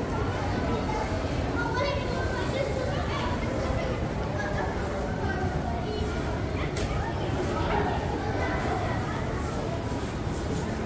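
Many voices murmur in a large echoing hall.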